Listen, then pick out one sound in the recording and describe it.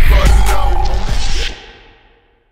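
A man raps loudly.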